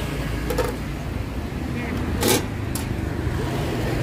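A metal lid clanks against a pan.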